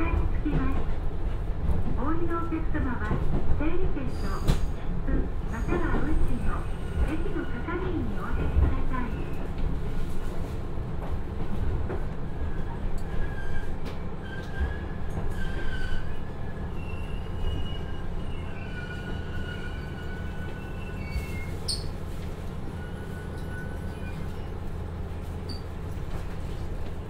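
A diesel train rumbles along the tracks, slowing down.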